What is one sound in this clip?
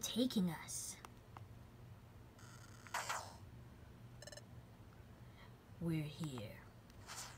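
A handheld game console plays short, chirpy electronic sounds from its small speaker.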